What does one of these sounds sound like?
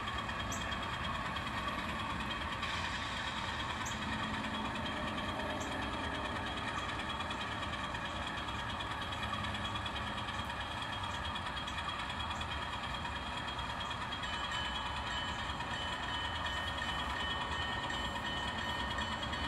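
A small model train rumbles and clicks along its track.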